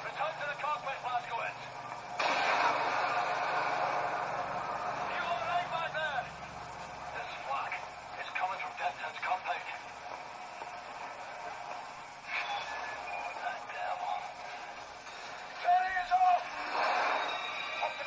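Video game sounds play from a small speaker.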